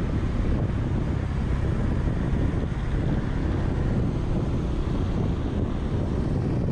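Wind rushes past, loud and low.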